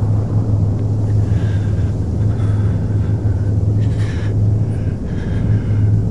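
Tank engines rumble steadily in the distance.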